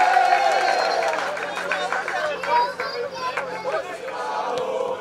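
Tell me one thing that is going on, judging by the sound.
Young men cheer and shout.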